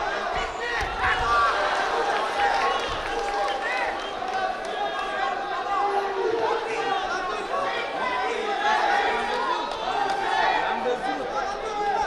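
Bodies thud and scuffle against a wrestling mat.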